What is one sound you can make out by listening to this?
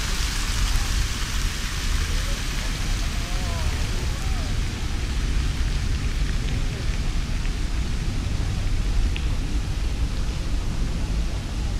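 A crowd of people chatters softly in the distance.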